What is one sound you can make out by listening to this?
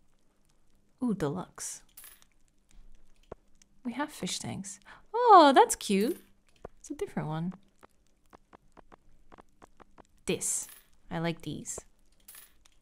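A young woman talks casually into a close microphone, in short bursts.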